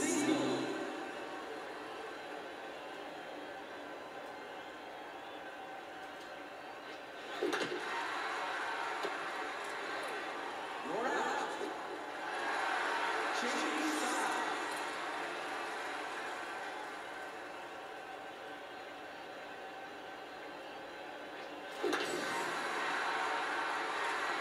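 A crowd cheers and murmurs in a stadium, heard through a television speaker.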